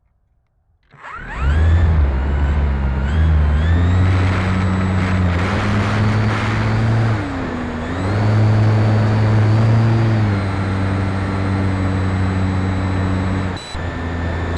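A model aircraft's electric motor whines up sharply and buzzes loudly as its propeller spins.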